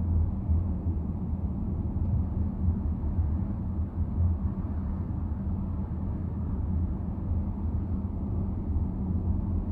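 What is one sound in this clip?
Tyres roll on the road with a low, steady rumble.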